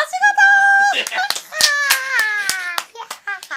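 A young woman claps her hands.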